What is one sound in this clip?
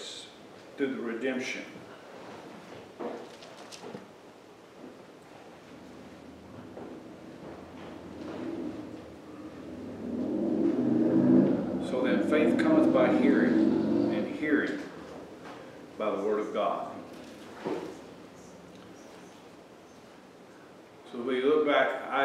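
An older man speaks calmly and earnestly through a microphone, with pauses.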